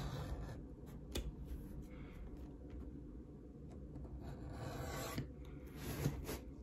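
Waxed thread rustles as it is pulled through leather.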